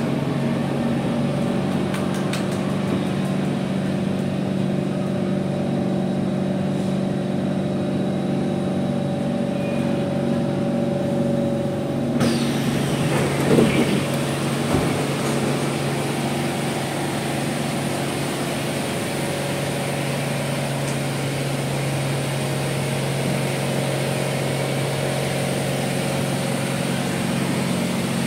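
A train hums and rumbles steadily from inside a carriage.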